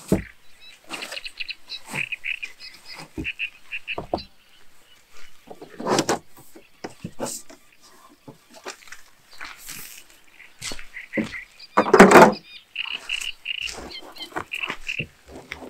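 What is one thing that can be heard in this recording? Gear thumps and rattles as it is loaded into a car boot.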